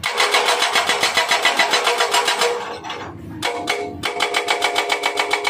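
A hydraulic breaker hammers rapidly against rock with a loud metallic clatter.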